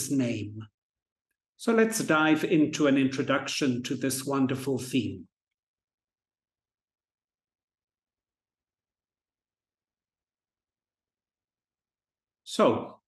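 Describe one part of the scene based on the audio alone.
A man speaks calmly and evenly into a close microphone, with short pauses.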